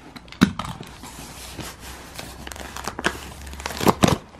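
Hands rub and shift a cardboard box with dry scraping sounds.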